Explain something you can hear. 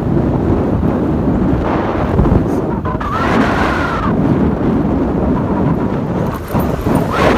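Wind roars loudly across a moving motorcycle.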